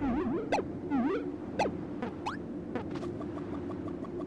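Cheerful game sound effects chirp and bounce.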